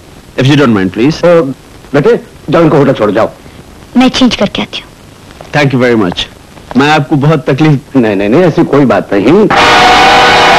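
A middle-aged man talks with animation close by.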